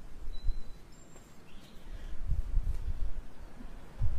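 Fabric rustles.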